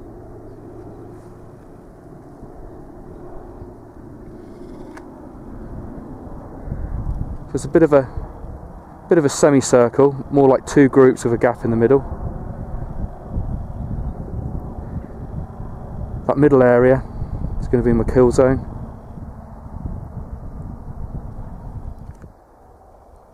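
Wind rumbles across open ground.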